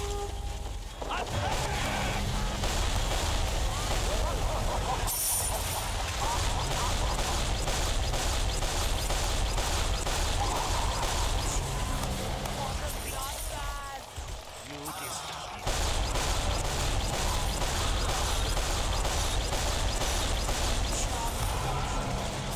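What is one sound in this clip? Gunfire rattles and explosions boom loudly in a game.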